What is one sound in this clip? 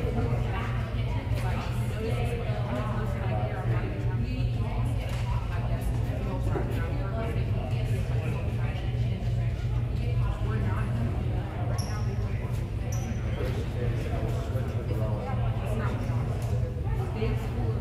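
Young women talk together in a close huddle.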